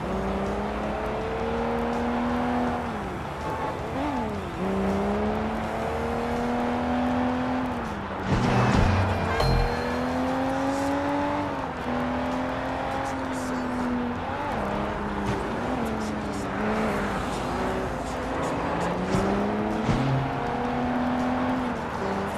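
A car engine roars steadily, rising and falling in pitch as it shifts gears.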